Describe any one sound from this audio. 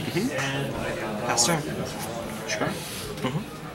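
Playing cards tap and slide softly on a table.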